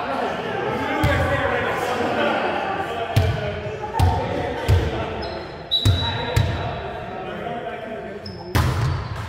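A volleyball thuds against hands and the floor.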